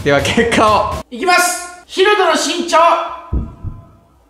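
Young men talk with animation close by.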